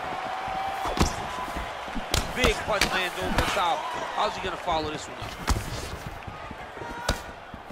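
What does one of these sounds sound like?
Punches land with dull thuds.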